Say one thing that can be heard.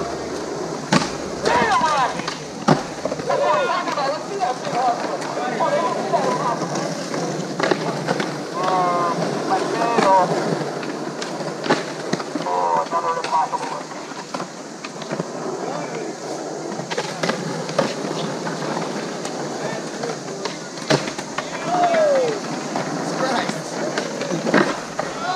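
Skateboards clack sharply on concrete.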